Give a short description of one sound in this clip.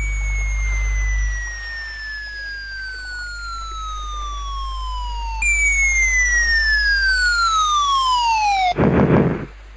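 A whistle falls steadily in pitch as something plunges from the sky.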